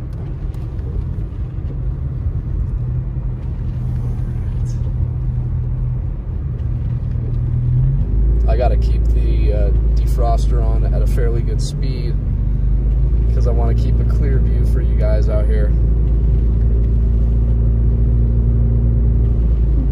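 A car engine hums steadily while driving.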